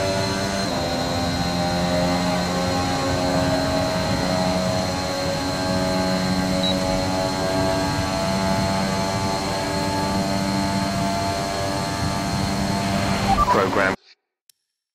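A racing car engine screams at high revs and shifts pitch slightly through gear changes.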